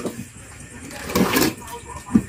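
A plastic bag rustles as something is pushed into it.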